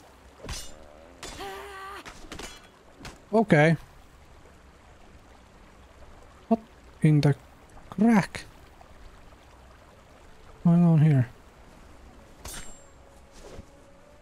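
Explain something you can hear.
A blade swings and strikes with a sharp thwack.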